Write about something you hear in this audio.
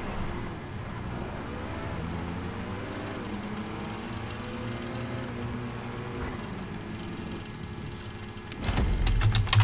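A car engine hums steadily at high speed.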